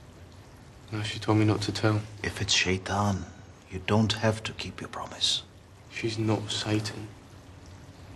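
A middle-aged man speaks seriously and closely.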